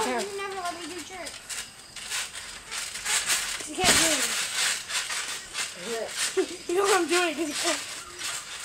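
Boys shout and call out playfully.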